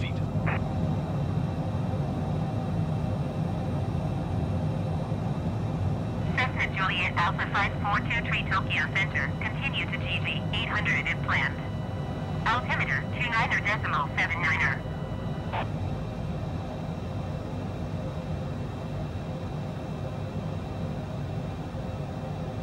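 A jet engine drones steadily.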